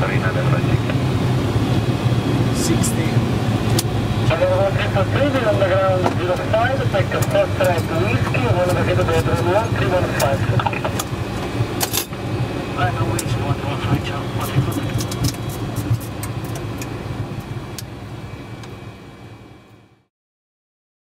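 Jet engines hum steadily inside a cockpit, then fade away.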